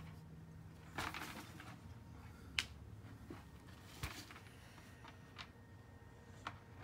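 A plastic pumpkin bucket bumps and rustles as a young girl handles it.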